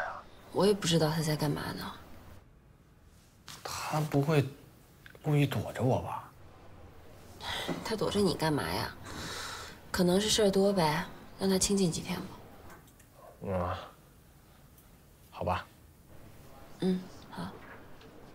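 A young woman talks on the phone in a calm voice.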